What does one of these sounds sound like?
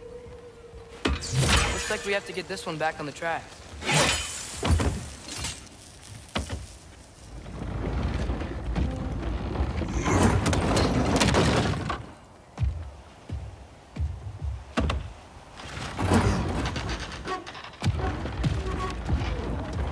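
Heavy footsteps thud on wooden planks.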